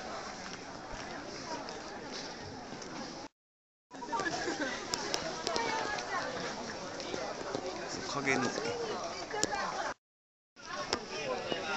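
A crowd chatters and murmurs all around outdoors.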